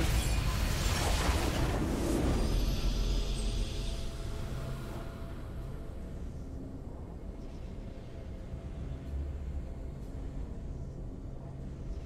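A triumphant fanfare plays.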